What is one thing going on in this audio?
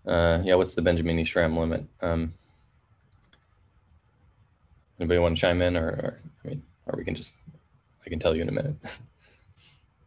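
A man talks calmly into a microphone, heard as if on an online call.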